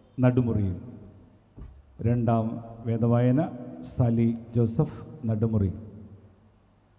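A man speaks loudly through a loudspeaker in a large echoing space.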